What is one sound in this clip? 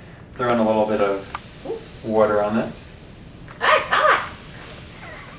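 A man speaks in short bursts.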